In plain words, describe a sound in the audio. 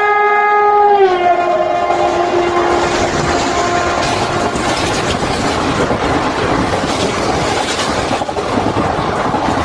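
A passing train roars and rattles loudly close by.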